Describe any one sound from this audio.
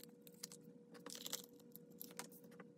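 A sticker peels off its backing with a soft tearing sound.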